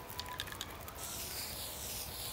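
A spray can hisses.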